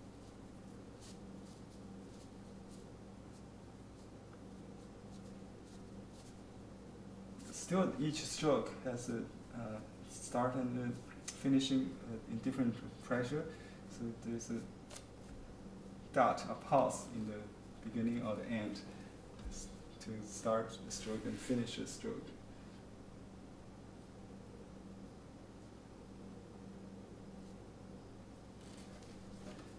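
An ink brush strokes across rice paper.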